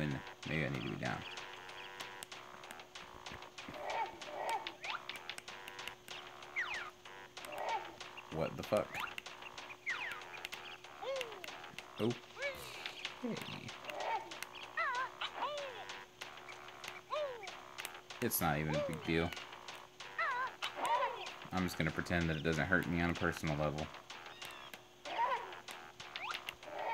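Game sound effects chirp and bounce as a character jumps.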